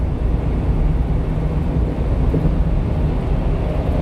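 A truck rumbles past close by.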